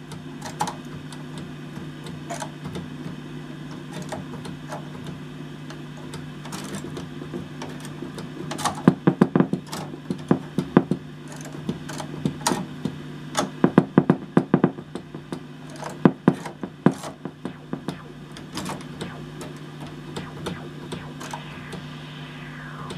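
Organ tab switches click as they are flipped.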